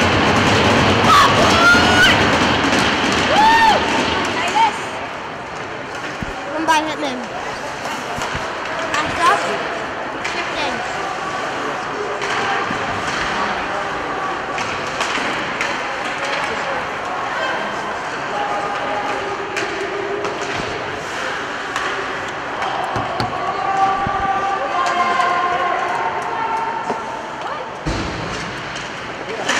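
Skate blades scrape and hiss on the ice.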